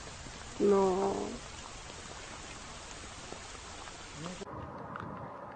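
Floodwater rushes and churns.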